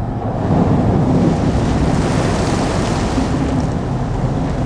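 Floodwater splashes hard against a car's windscreen.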